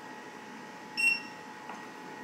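A device gives a short high beep.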